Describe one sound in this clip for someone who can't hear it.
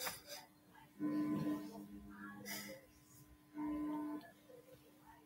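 An electric guitar plays a few short ringing chords.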